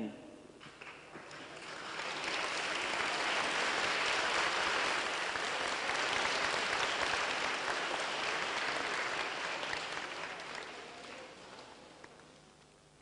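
A large crowd cheers and screams in an echoing hall.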